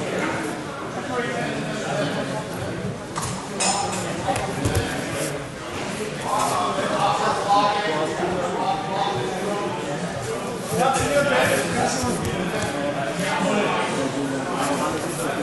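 Men and women call out and shout encouragement from nearby in a large echoing hall.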